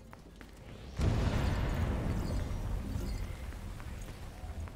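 A loud blast bursts and rumbles.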